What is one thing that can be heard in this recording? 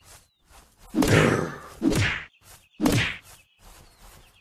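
Heavy blows land with loud thumps.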